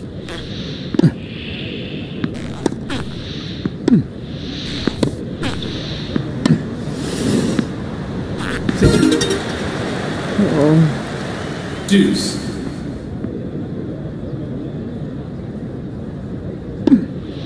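A tennis racket strikes a ball with sharp pops, back and forth.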